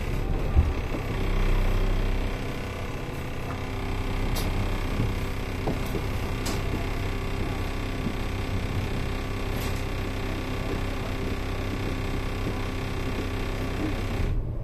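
A vehicle's engine idles with a steady hum.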